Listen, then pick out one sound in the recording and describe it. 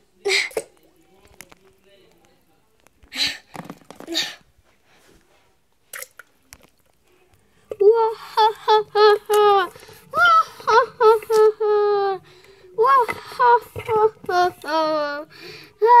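Water splashes in a small cup.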